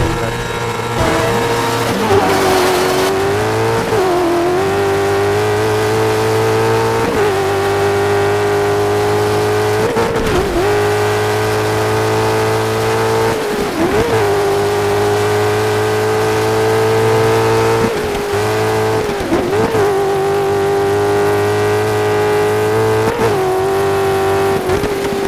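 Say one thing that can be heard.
A racing car engine roars at high revs, dipping briefly at each gear change.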